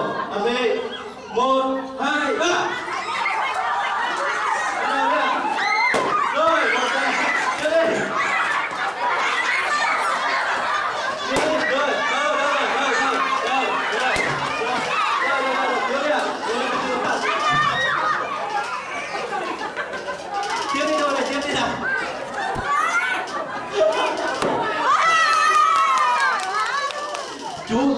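Young children chatter and shout excitedly all around.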